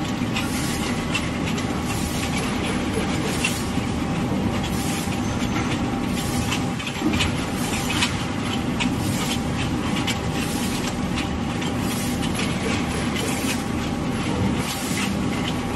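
A machine runs with a loud steady rattle.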